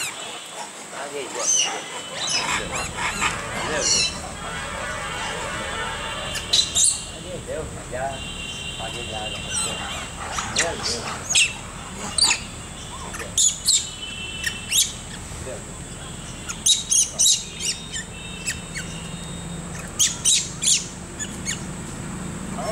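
Monkeys squeal and chatter.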